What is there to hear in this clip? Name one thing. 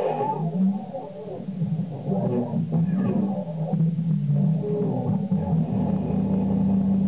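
An electric guitar is strummed through an amplifier.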